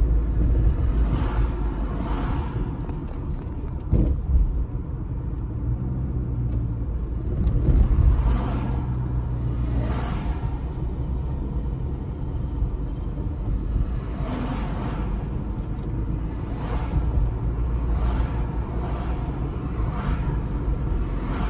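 Cars swish past in the other direction.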